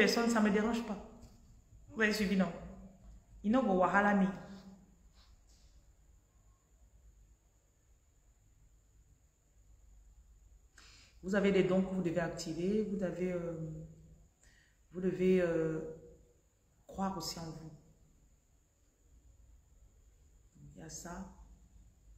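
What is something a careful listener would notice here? A woman speaks calmly and close to the microphone, with pauses between phrases.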